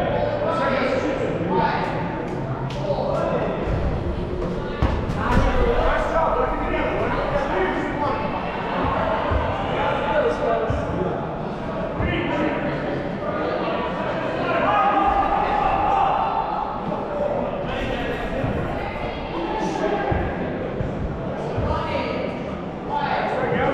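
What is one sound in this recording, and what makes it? Balls smack against players and bounce off the floor.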